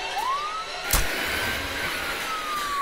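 An explosion bursts with a loud roar and crackles afterward.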